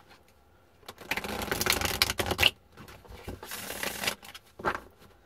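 Playing cards are shuffled with a quick riffling rustle.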